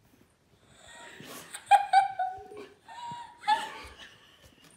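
A young child gasps and cries out softly.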